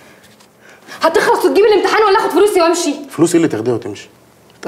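A young man speaks loudly and angrily.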